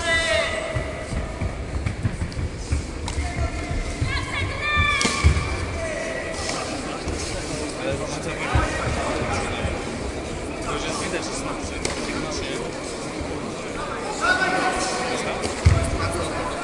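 A crowd shouts and cheers in an echoing sports hall.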